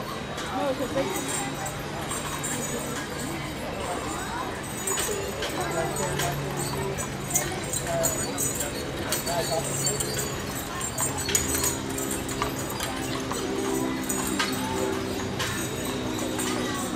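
Wooden wagon wheels rumble and creak as a stagecoach rolls by.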